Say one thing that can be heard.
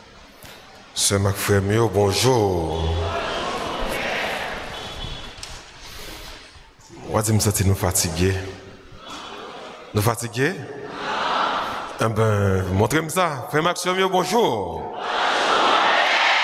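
A man speaks calmly into a microphone, heard through loudspeakers in a large echoing hall.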